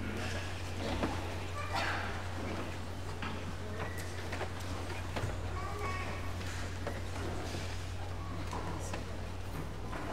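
A congregation rustles and shifts quietly in a large echoing hall.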